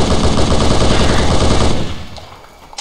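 A rifle fires a loud, rapid burst of shots.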